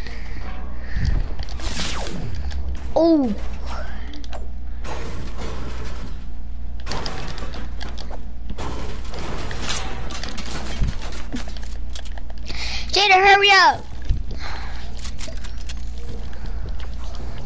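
Game building pieces snap into place with quick, hard clatters.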